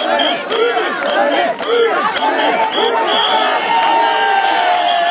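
A large crowd outdoors cheers and shouts loudly.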